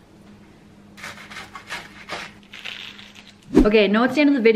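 A young woman crunches a bite of food.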